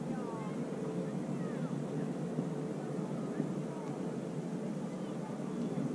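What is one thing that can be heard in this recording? Wind blows steadily outdoors, rumbling against the microphone.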